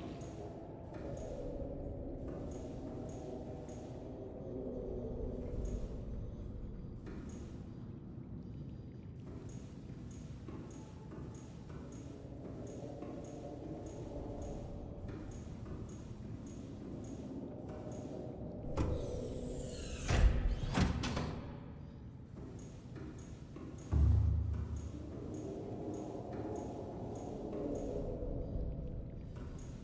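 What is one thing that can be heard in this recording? Footsteps tap steadily on a metal floor.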